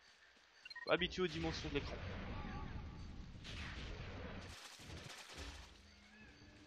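A gun fires bursts of shots.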